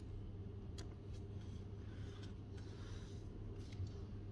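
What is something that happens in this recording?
A page of a book rustles as it turns.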